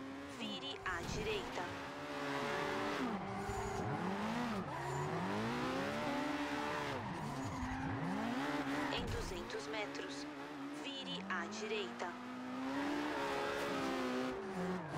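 A sports car engine revs hard and drops as the car drifts through a race.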